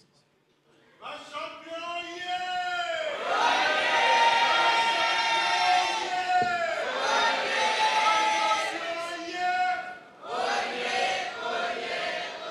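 A crowd of women and men sing a hymn together.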